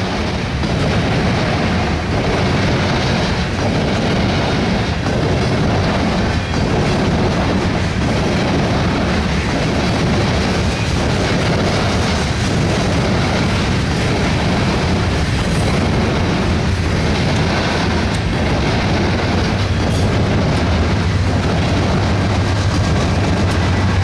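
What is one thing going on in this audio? Freight train wagons rumble and clatter past close by.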